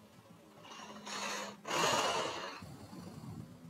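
Fabric rustles close by.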